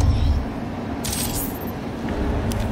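A short bright chime rings as an item is picked up.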